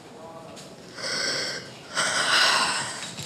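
A young woman sobs loudly.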